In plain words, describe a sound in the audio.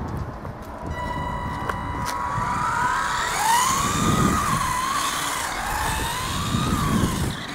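A toy car's electric motor whines, rising and falling in pitch as it speeds away.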